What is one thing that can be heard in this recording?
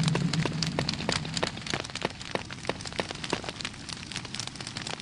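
Footsteps tap on a stone floor in an echoing hall.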